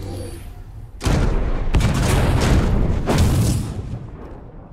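A heavy gun fires rapid blasts that burst into loud explosions.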